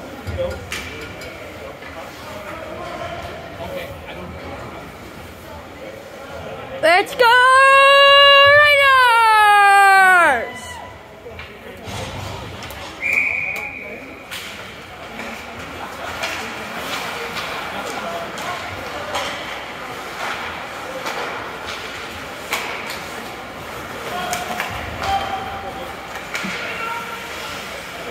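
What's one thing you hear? A crowd of spectators murmurs in a large echoing rink.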